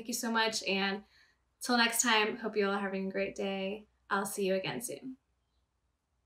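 A young woman speaks warmly and close to a microphone.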